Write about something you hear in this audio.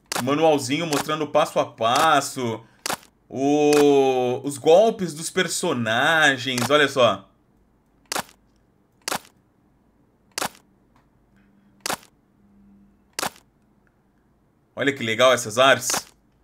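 A man talks with animation, close through a microphone.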